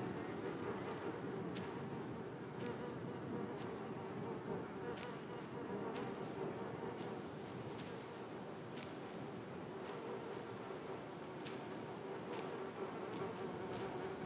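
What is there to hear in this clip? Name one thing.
Small footsteps patter over grass and soil.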